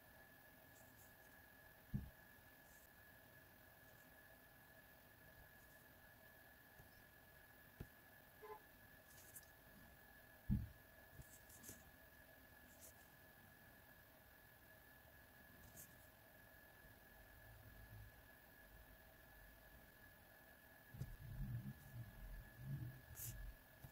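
A marker pen scratches softly across paper.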